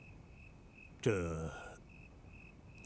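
An older man speaks briefly with hesitation, close by.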